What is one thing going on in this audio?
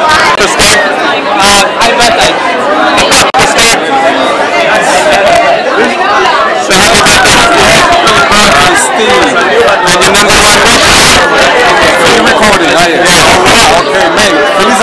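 A crowd of people chatter loudly in the background.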